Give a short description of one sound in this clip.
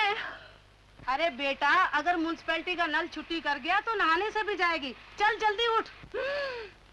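An older woman shouts angrily.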